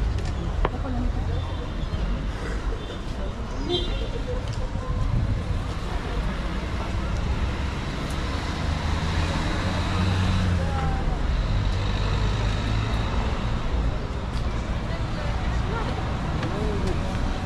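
Many men and women chatter nearby on a busy outdoor street.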